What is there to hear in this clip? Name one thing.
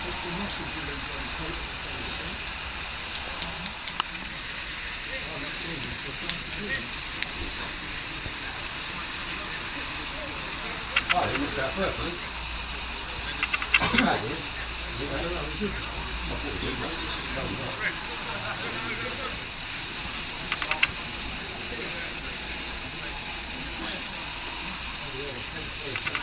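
Men's voices chatter nearby outdoors.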